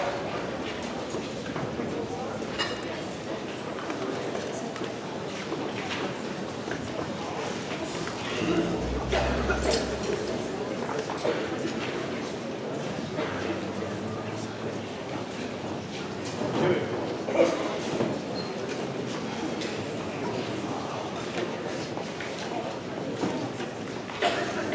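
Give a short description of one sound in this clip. A band plays on stage in a large hall.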